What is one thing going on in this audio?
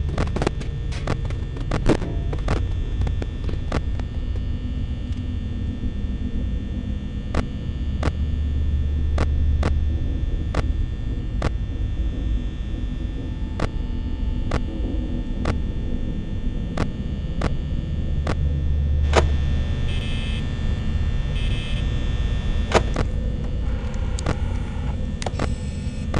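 Short electronic clicks sound again and again.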